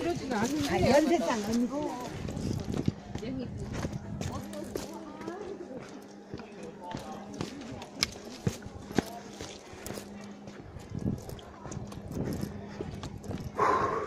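Footsteps crunch on stone steps and dry leaves.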